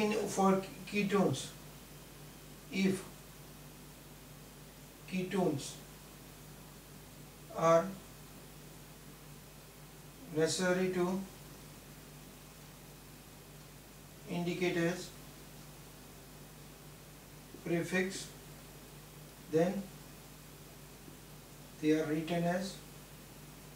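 A middle-aged man speaks slowly in short phrases, close by.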